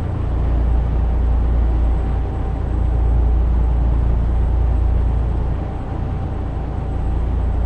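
A truck engine drones steadily with a deep rumble.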